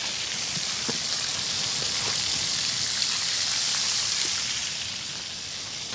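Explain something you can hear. Food sizzles in a frying pan over an open fire.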